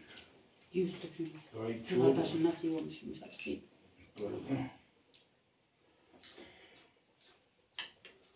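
Dishes clink softly.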